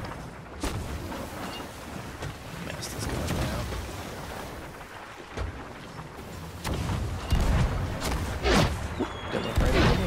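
Ocean waves roll and crash steadily.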